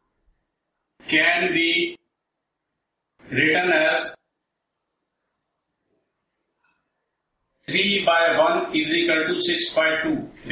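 A middle-aged man speaks calmly in short phrases, close by, heard through a microphone.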